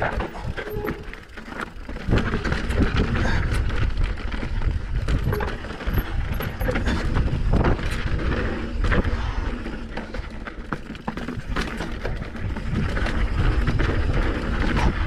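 Bicycle tyres crunch and rattle over a rough dirt and stone trail.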